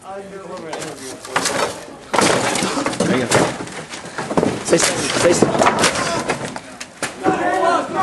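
Wooden boards knock and thump under a man climbing close by.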